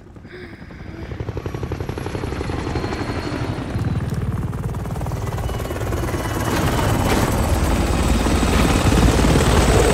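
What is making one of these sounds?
A helicopter's rotor thumps and roars, growing louder.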